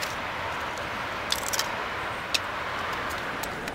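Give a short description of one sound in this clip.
A small model wagon clicks down onto a hard surface.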